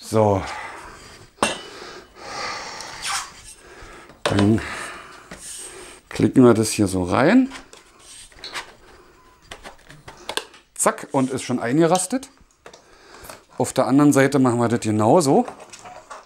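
Plastic parts knock and clatter as they are fitted together.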